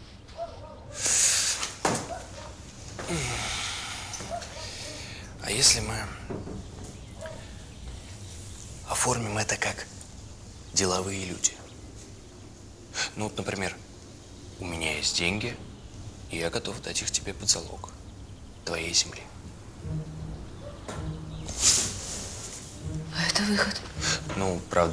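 A young man speaks quietly and intently at close range.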